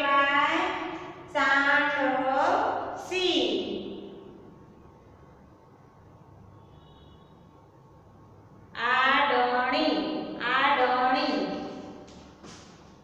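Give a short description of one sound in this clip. A young woman speaks clearly and slowly nearby, as if teaching.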